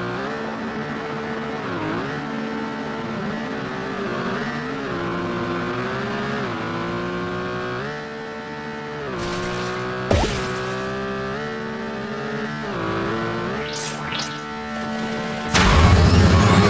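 A small kart engine buzzes and revs up and down.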